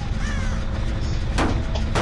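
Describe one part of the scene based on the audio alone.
A machine clanks and rattles under repair.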